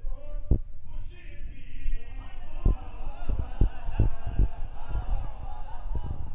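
A crowd of men chant loudly together.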